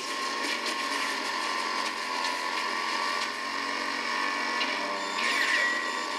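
A video game vehicle engine roars steadily.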